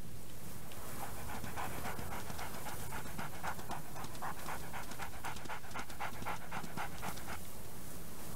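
Paws patter quickly over crunchy snow.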